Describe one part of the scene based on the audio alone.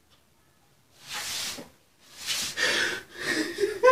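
A man wails and sobs loudly close by.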